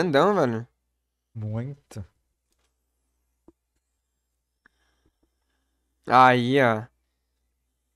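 A young man talks with animation over a microphone.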